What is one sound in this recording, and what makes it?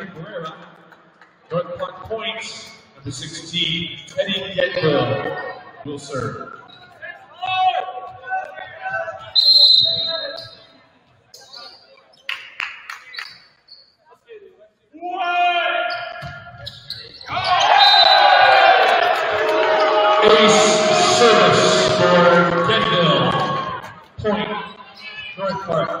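A volleyball is struck hard in a large echoing hall.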